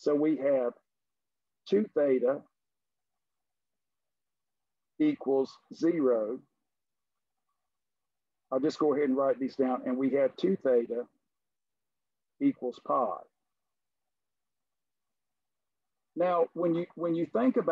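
An older man speaks calmly into a microphone, explaining.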